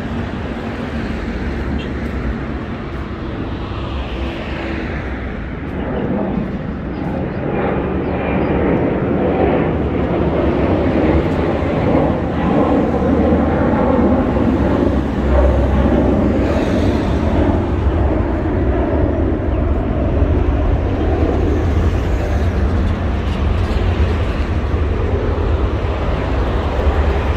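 Traffic rumbles steadily along a nearby road.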